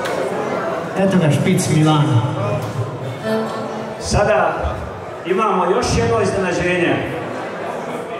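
A man speaks through a microphone over loudspeakers.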